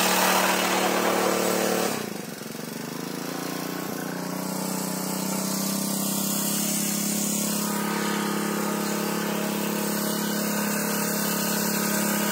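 A small tiller engine runs loudly and steadily, briefly dropping in pitch before picking up again.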